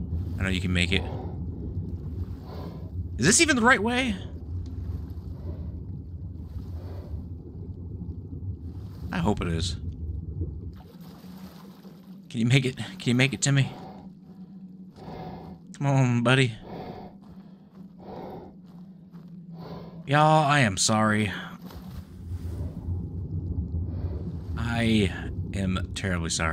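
Water rumbles in a low, muffled underwater drone.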